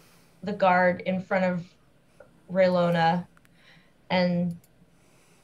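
A woman speaks with animation through a microphone on an online call.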